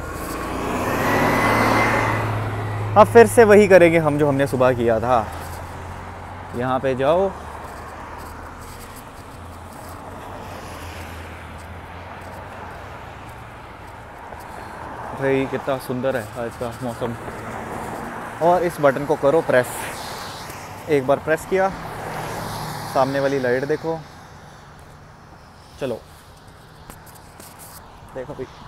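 Cars pass on a nearby road.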